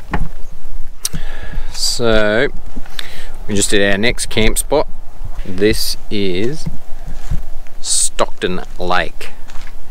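A man talks casually, close to a microphone.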